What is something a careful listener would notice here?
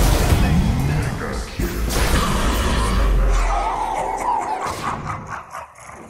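Game spells blast and crackle in a fight.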